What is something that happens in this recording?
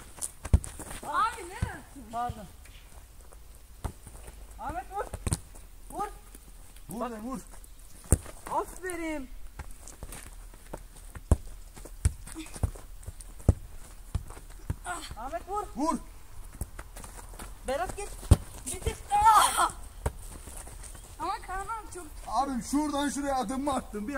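A girl calls out excitedly.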